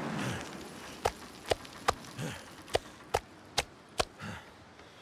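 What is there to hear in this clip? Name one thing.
Footsteps thud on wooden boards.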